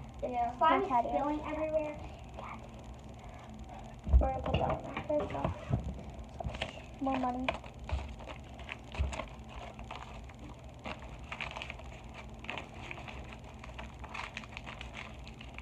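Plastic packaging crinkles and rustles in hands close by.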